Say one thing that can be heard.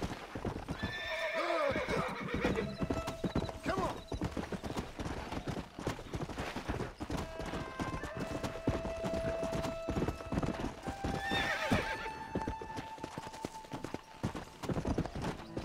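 A horse's hooves gallop steadily over dry ground.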